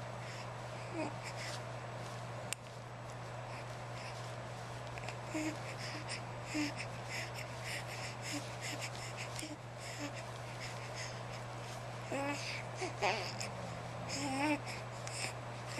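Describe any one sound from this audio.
A baby coos and babbles softly close by.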